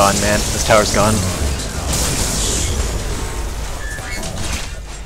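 Explosions boom and crackle in a video game.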